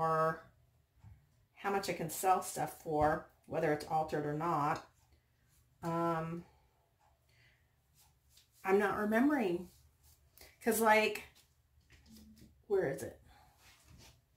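A middle-aged woman talks calmly and close by, in short phrases with pauses.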